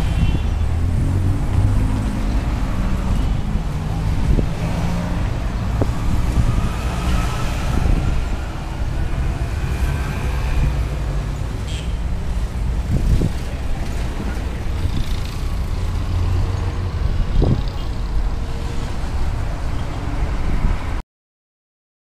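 Car engines rumble steadily as traffic drives past on a city street.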